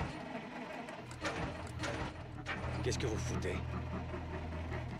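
An engine starts and then idles with a low rumble.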